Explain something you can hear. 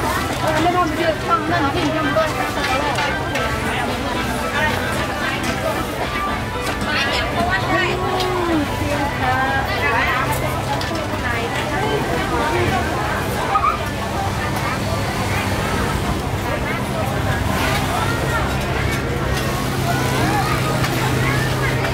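A busy crowd of men and women chatter all around outdoors.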